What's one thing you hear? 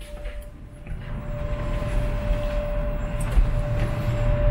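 Wind blows loudly outdoors.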